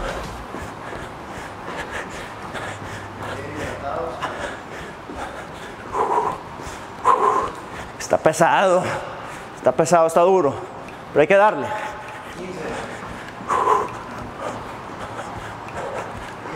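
A man's shoes thump on a rubber floor as he hops.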